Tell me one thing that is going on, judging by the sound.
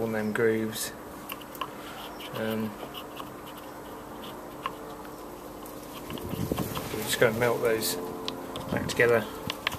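Fingers rub and tap against a hard rubber part close by.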